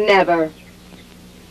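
A woman exclaims sharply, close by.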